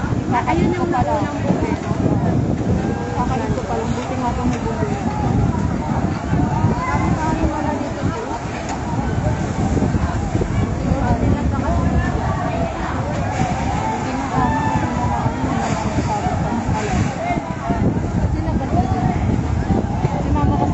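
Water from a fire hose sprays onto burning roofs.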